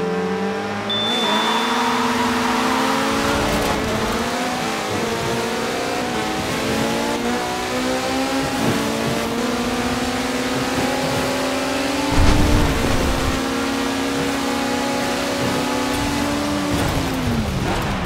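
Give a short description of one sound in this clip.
Racing car engines roar as they speed up through the gears.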